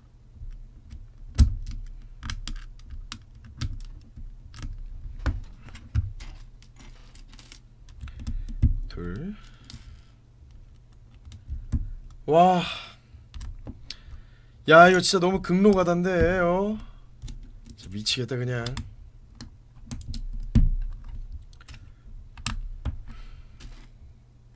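Plastic bricks click and clatter as they are snapped together.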